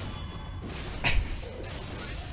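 A sword strikes with a sharp clang.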